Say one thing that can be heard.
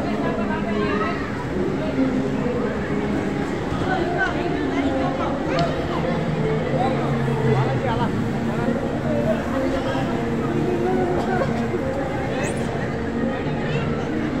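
A crowd of adults and children chatters and shouts in a large echoing hall.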